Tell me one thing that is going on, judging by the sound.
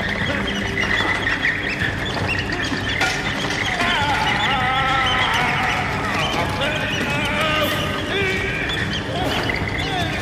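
Several children talk and shout excitedly close by.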